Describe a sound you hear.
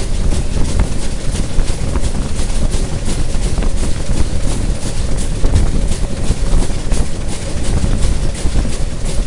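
A train rumbles along the tracks at speed.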